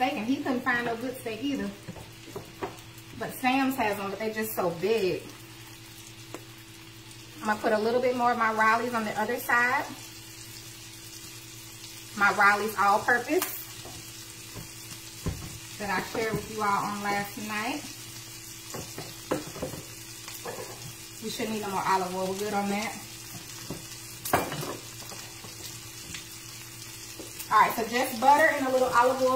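A steak sizzles steadily in a hot pan.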